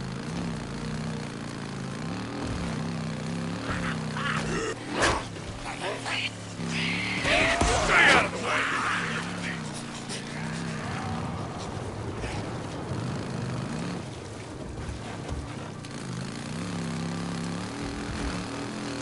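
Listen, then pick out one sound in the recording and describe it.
A motorbike engine hums and revs up and down steadily.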